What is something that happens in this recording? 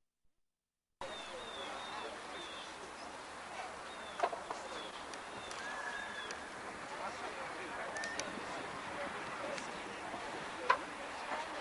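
A man leads a prayer aloud outdoors.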